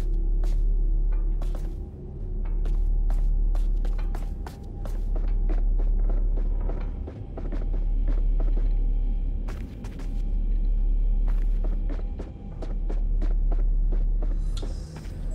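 Footsteps tap on a wooden floor at a steady walking pace.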